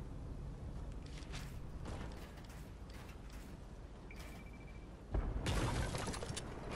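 Building pieces clatter and thud into place.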